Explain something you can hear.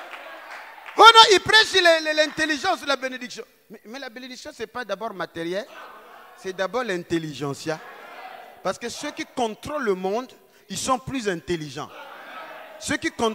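A man speaks loudly and with passion through a microphone and loudspeakers in an echoing hall.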